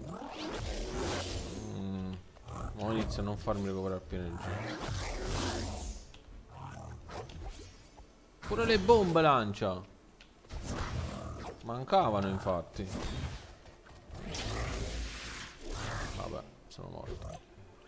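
Electronic laser blasts fire in quick bursts.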